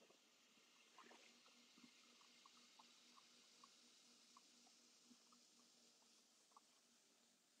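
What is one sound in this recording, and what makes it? A pottery wheel hums softly as it spins.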